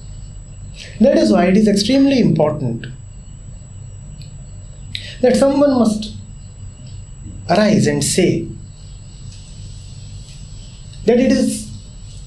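A man speaks calmly and slowly into a close microphone, in short phrases with pauses.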